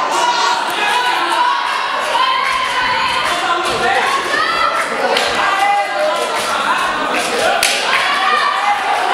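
A crowd of spectators shouts and cheers.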